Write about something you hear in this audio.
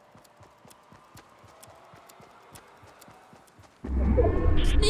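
Footsteps thud quickly and steadily on grass.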